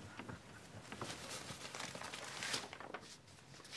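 A sheet of paper rustles as it is waved.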